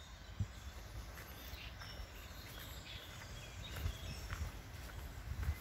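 Footsteps thud on a dirt path.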